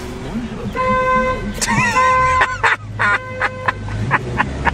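A car horn honks in short repeated blasts.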